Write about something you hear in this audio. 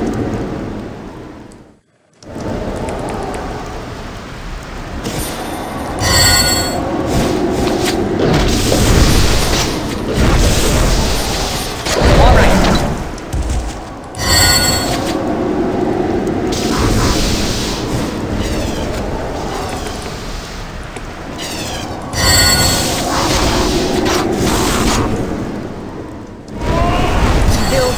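Swords clash and spells crackle in a battle.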